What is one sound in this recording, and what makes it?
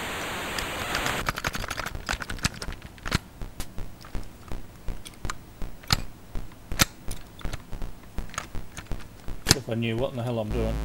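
An old computer game gives quick sharp clicks and blips.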